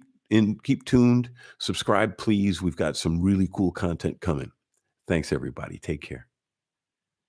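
A middle-aged man speaks with animation, close into a microphone.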